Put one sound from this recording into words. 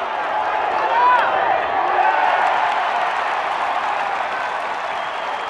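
A crowd cheers loudly after a pitch.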